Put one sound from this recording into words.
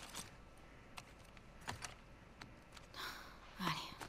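Paper rustles softly.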